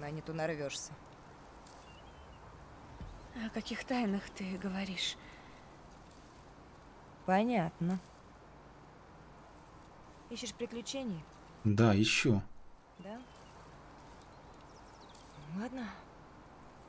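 A teenage girl speaks softly and hesitantly nearby.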